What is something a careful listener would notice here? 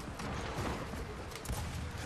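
Gunfire bursts in rapid shots.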